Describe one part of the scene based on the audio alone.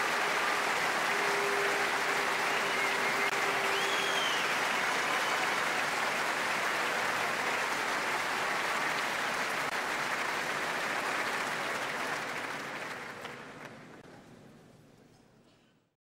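A large crowd applauds loudly in a big echoing hall, then the applause fades away.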